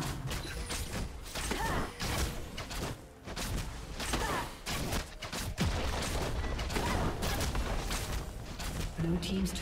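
Magic spells crackle and burst in a fast game fight.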